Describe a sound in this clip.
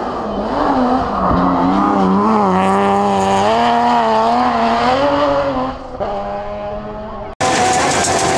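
A rally car's engine roars and revs higher and lower as the car speeds closer and passes by.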